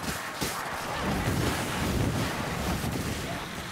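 A fire blast roars and crackles.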